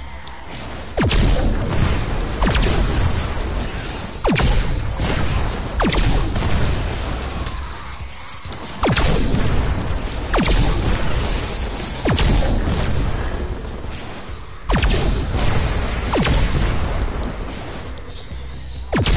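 A heavy weapon fires loud, booming blasts again and again.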